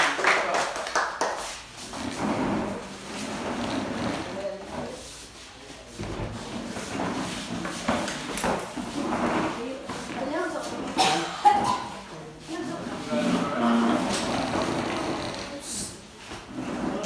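Several young people talk and laugh close by.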